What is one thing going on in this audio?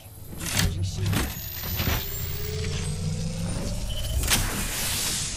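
A shield battery charges with a rising electronic hum.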